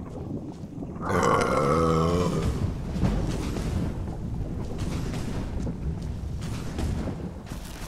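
A magic spell crackles and hums steadily.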